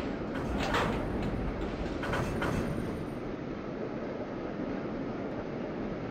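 A metro train rumbles along the rails through a tunnel.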